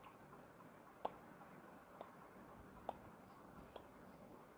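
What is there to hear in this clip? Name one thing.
Footsteps tap softly at an even pace.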